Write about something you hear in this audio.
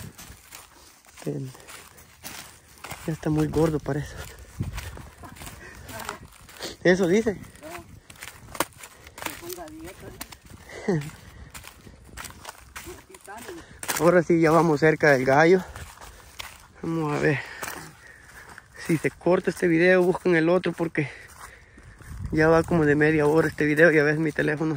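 Footsteps crunch on dry corn stalks.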